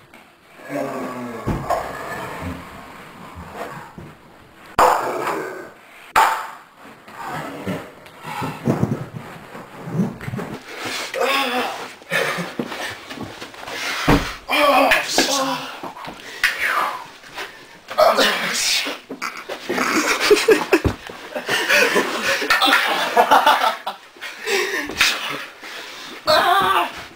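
Young men shout and laugh with excitement nearby.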